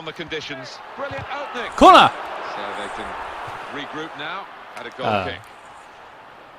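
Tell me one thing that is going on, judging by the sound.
A stadium crowd roars and cheers.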